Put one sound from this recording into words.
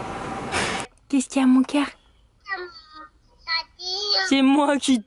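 A young child speaks through a phone on a video call.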